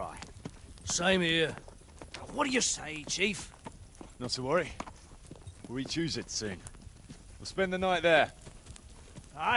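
A man speaks calmly in reply.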